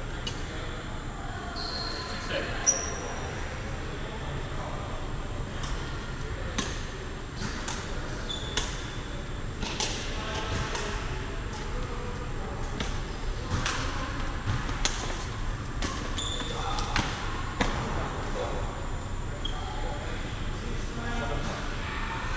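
Players' footsteps thud on the court.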